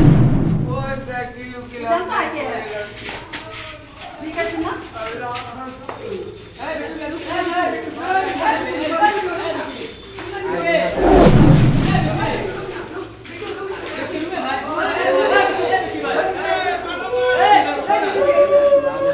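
Several young men shout and argue loudly close by.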